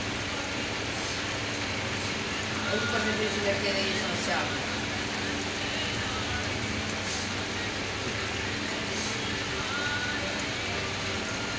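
Small objects click softly in a woman's hands.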